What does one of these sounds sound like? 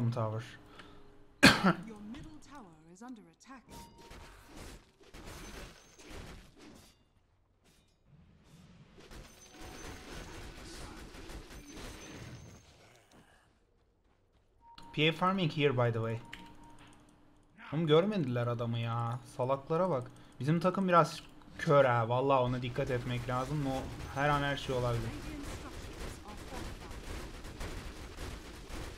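Video game fight effects clash and whoosh.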